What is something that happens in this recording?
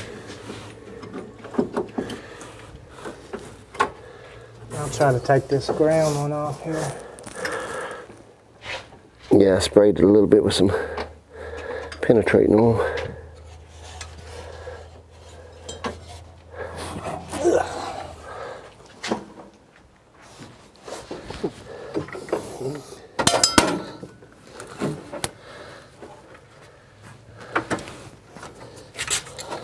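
Metal parts clink and knock under a car's hood.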